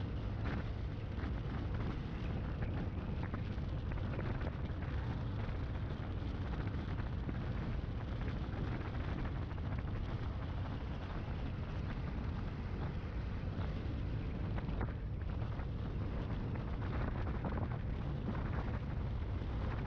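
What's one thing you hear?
Tyres hum on smooth asphalt.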